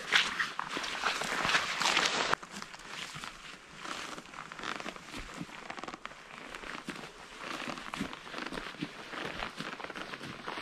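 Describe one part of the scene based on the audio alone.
Footsteps crunch on dry moss and twigs.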